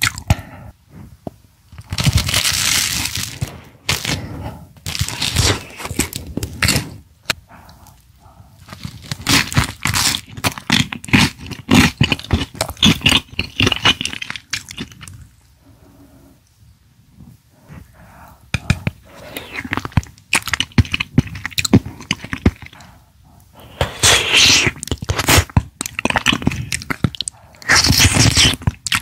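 A woman chews and munches food loudly close to a microphone.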